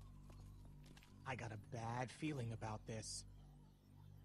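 A young man speaks warily in video game dialogue.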